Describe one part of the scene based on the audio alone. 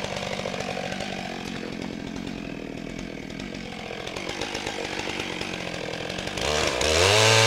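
A chainsaw engine idles with a steady rattle.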